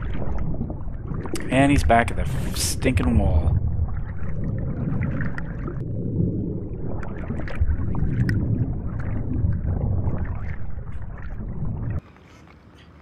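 Water rumbles and swirls softly underwater.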